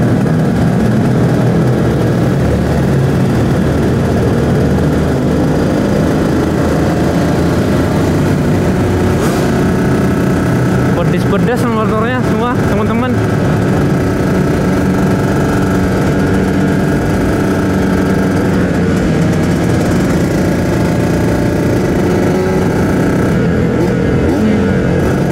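A motorcycle engine roars steadily up close.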